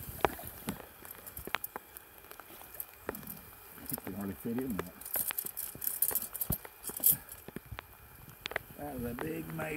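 A metal trap chain rattles and clinks.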